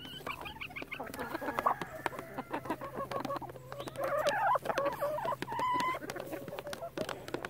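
Chickens peck rapidly at food, tapping.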